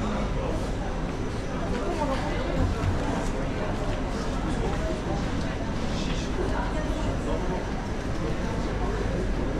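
A metro train rumbles and rolls to a stop alongside the platform.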